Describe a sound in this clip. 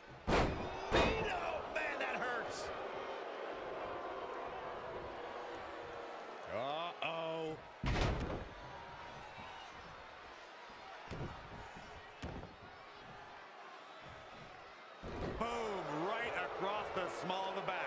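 A crowd cheers and murmurs throughout in a large arena.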